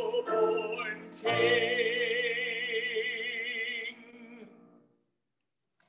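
An elderly man sings in a large echoing room, heard through an online call.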